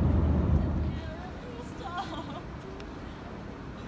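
A woman speaks excitedly close by.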